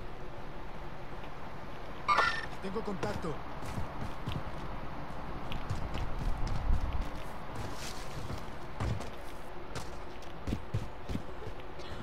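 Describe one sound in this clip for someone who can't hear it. Footsteps run over dirt and grass.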